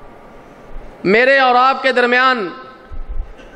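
A man speaks loudly and with feeling into a microphone, with a slight echo.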